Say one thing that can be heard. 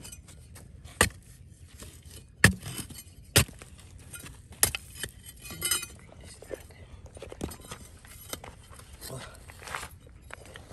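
A metal bar scrapes and knocks against rock.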